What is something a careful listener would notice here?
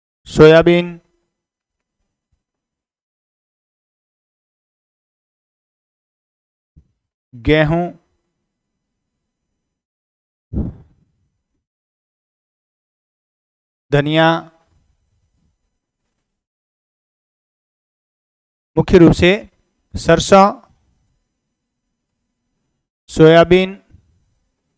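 A middle-aged man speaks calmly into a clip-on microphone, in short phrases with long pauses.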